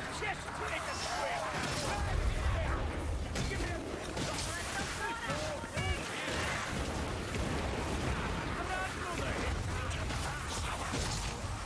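Fire roars and crackles.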